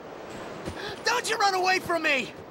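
A young man shouts angrily.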